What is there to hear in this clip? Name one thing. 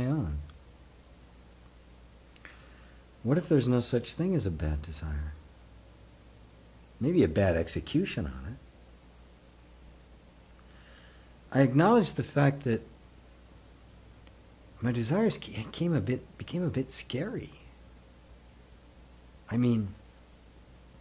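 An elderly man speaks calmly and slowly, close to a microphone, with long pauses.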